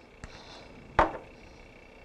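A glass clinks on a hard surface.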